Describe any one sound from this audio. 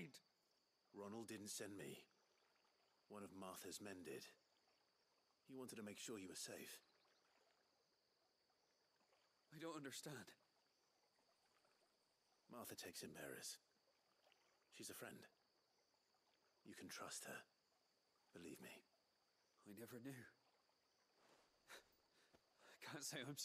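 A man speaks calmly and reassuringly.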